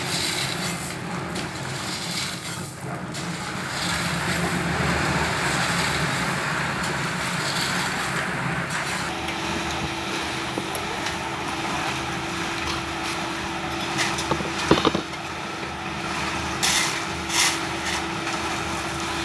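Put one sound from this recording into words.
Shovels scrape and crunch into gravel and sand.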